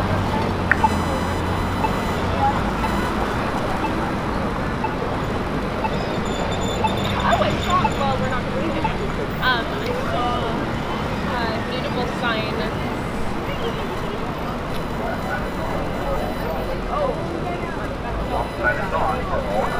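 Voices of passers-by chatter nearby.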